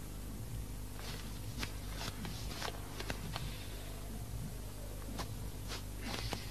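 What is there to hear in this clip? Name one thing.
Hands rustle and fumble with something.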